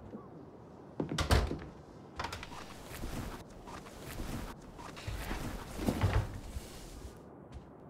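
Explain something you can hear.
A wooden wardrobe door creaks open and bangs shut.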